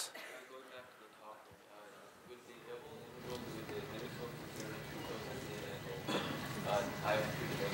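A man lectures calmly in an echoing hall, heard through a microphone.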